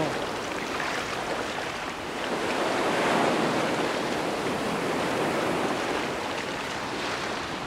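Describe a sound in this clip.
Feet splash through shallow water.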